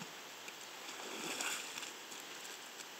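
A man wades through shallow water, his boots splashing.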